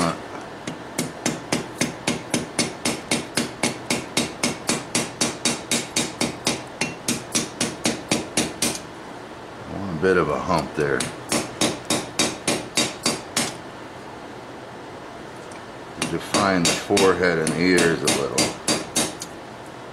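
A hammer rings sharply on an anvil in quick, steady blows.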